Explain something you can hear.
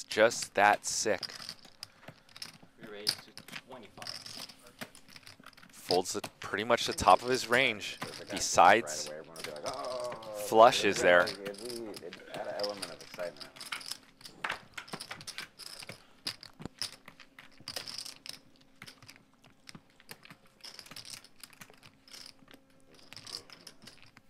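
Poker chips click and clatter.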